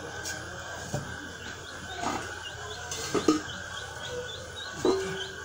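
A man handles objects with light knocks.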